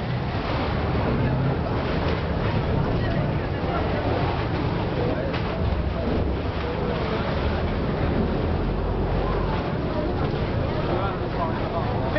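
Water churns and splashes against a pier.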